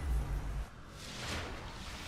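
A glowing energy burst crackles and hums.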